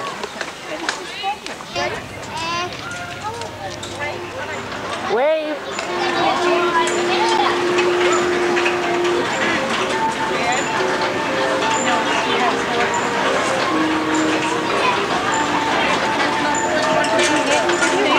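Children chatter and shout excitedly.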